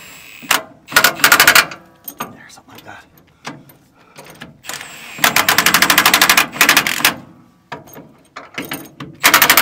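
A power tool rattles in quick, loud bursts at close range.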